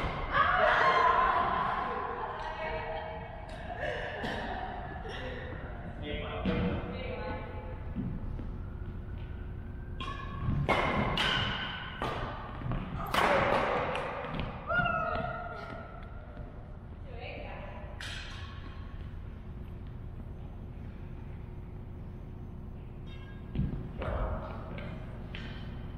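Shuttlecocks are hit with rackets in a large echoing hall.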